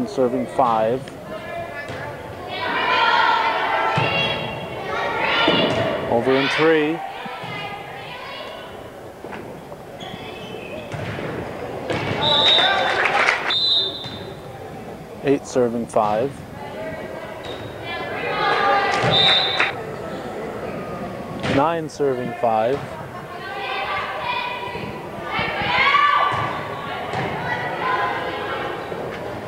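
Spectators cheer and shout in an echoing gym.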